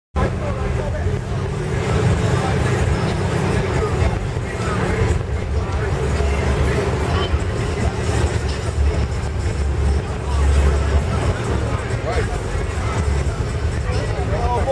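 A car engine idles with a deep, rumbling exhaust.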